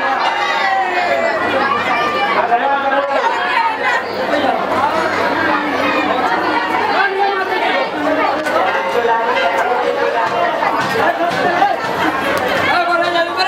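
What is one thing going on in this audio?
A crowd of men and women sing and chant loudly nearby.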